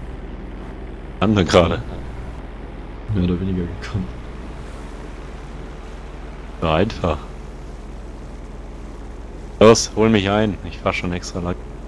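A small propeller plane's engine runs with a steady low drone.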